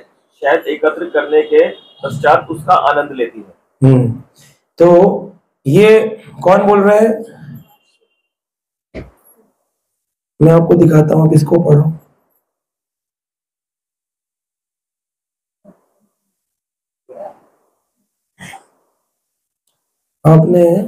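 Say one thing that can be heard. A middle-aged man chants slowly into a microphone, heard close up, with long pauses.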